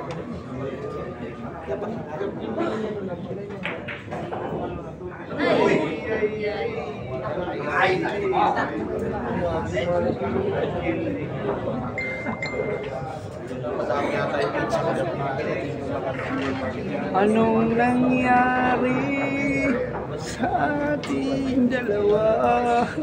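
A crowd of young men murmur and chatter in an echoing hall.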